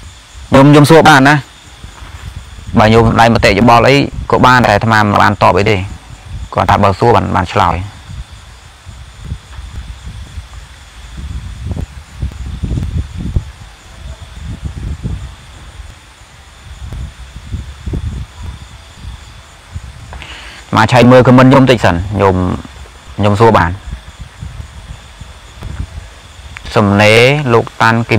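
A young man speaks calmly and close up, with long pauses.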